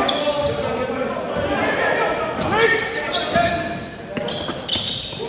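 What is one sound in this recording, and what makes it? Players' footsteps thud on the court.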